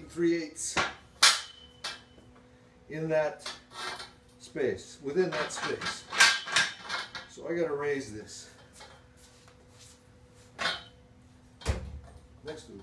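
A metal pipe clanks and scrapes against a bender.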